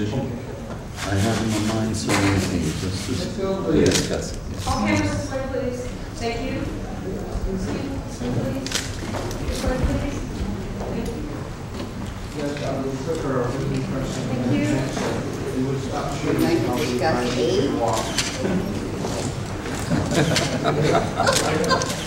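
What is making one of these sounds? A middle-aged man speaks calmly nearby.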